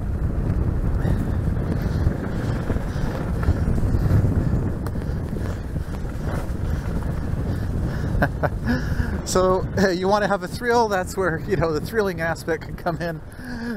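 Bicycle tyres rumble steadily over a bumpy dirt trail.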